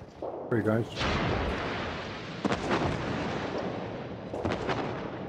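Heavy guns fire in deep booming salvos.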